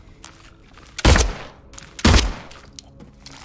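A pistol fires two loud shots in an echoing space.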